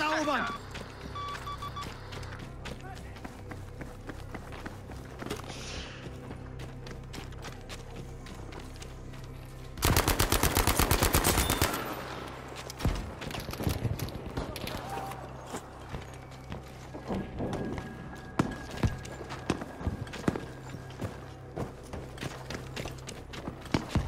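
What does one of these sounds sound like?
Distant gunfire and explosions crack and thud.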